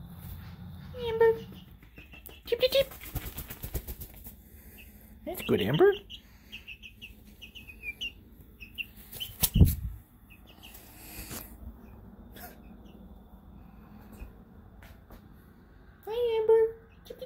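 A hen clucks and squawks close by.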